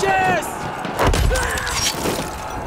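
A pickaxe strikes a body with a heavy thud.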